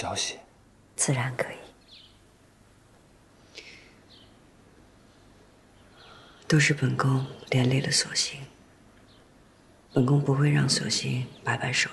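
An adult woman speaks calmly.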